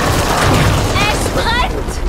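A monster splatters and bursts apart.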